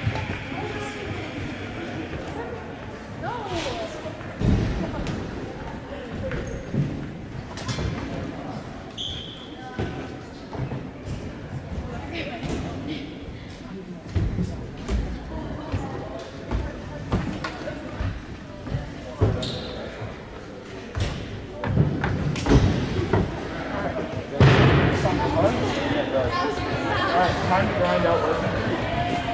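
Young women chatter and call out with animation nearby.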